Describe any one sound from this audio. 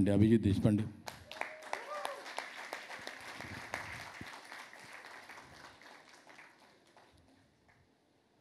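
People clap and applaud, slowly fading.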